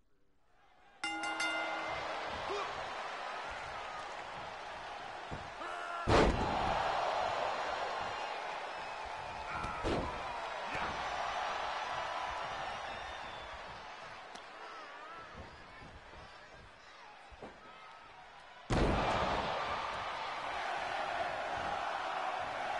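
A large crowd cheers and roars throughout an arena.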